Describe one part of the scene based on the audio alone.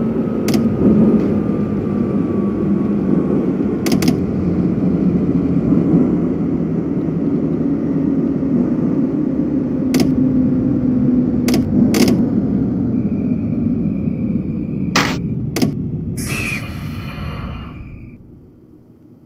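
A train rumbles steadily along the rails and slows to a stop.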